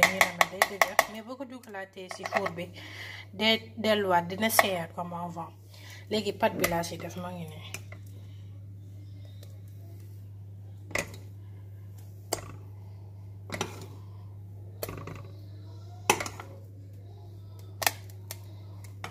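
A metal spoon taps and scrapes against a metal cake pan.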